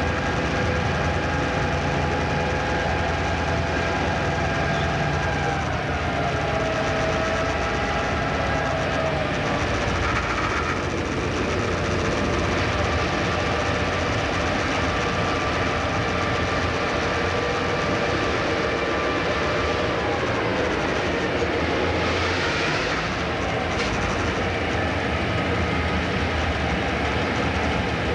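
An electric train's motors whine, their pitch slowly shifting.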